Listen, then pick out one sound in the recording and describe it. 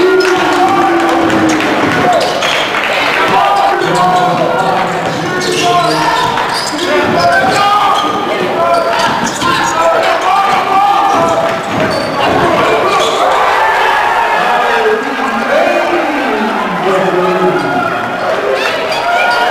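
Sneakers squeak sharply on a hard court floor in a large echoing gym.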